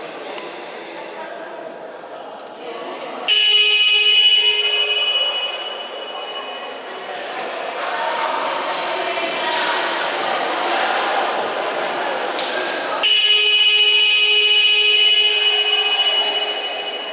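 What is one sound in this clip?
A man speaks firmly to a group of players in a large echoing hall.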